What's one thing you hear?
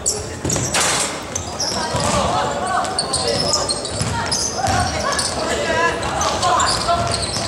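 Young voices shout across an echoing gym.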